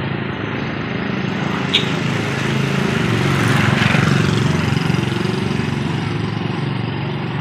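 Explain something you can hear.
A motorbike engine hums as it rides past close by.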